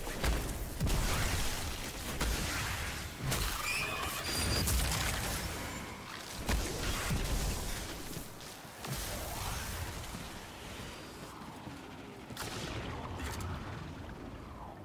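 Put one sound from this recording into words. Blasts and gunfire crash loudly from a game, then grow quieter.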